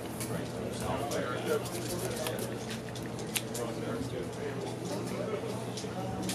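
Playing cards are shuffled and riffled by hand.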